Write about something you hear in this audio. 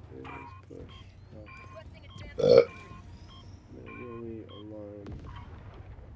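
Short electronic beeps sound from a terminal.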